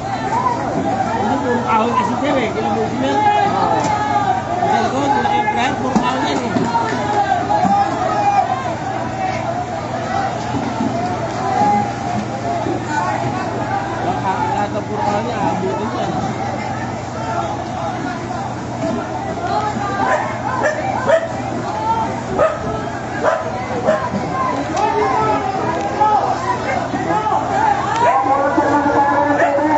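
A large crowd of men and women shouts and clamours nearby, outdoors.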